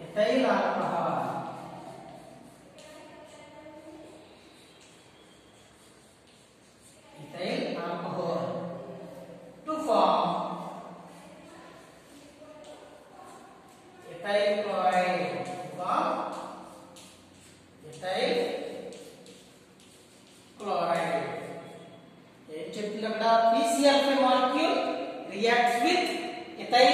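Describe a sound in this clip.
A man speaks aloud in a calm, lecturing voice in an echoing room.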